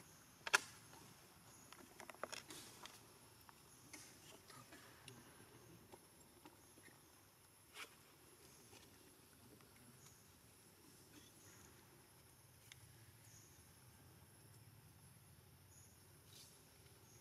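A monkey's fingers rustle softly through fur.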